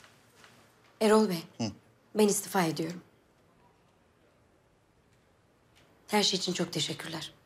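A woman speaks firmly and clearly, close by.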